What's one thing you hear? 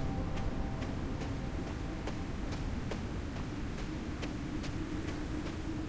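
Quick footsteps crunch over soft ground.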